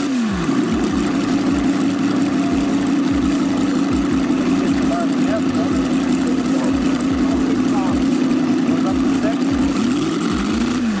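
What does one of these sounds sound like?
A small model engine runs with a steady, fast buzzing idle.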